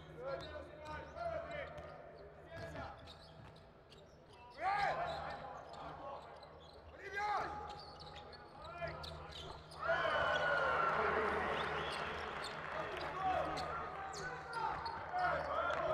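Sneakers squeak sharply on a hardwood court.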